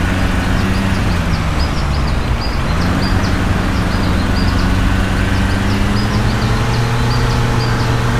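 A bus engine hums steadily and rises in pitch as it speeds up.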